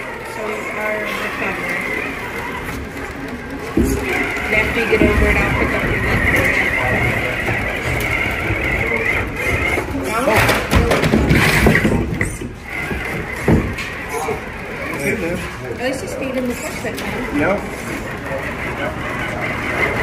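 A toy truck's small electric motor whirs as it crawls over rocks.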